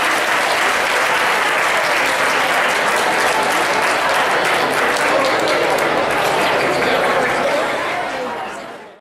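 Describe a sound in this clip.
A large crowd applauds outdoors, then the applause fades away.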